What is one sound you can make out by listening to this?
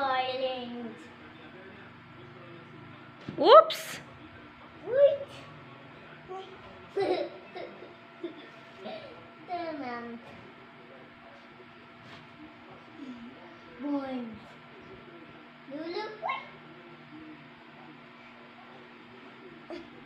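Clothes rustle as a small child pulls them from a pile.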